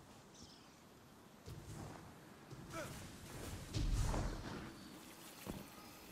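A large blast booms.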